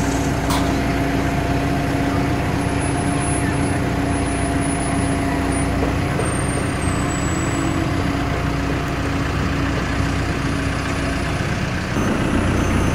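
A diesel engine idles steadily nearby.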